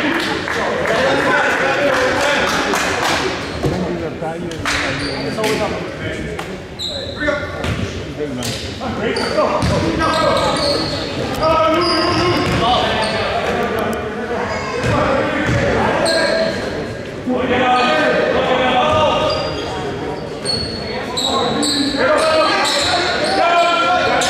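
Young players and spectators shout and chatter in a large echoing hall.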